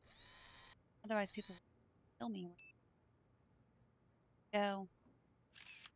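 A young woman speaks briefly and casually into a close microphone.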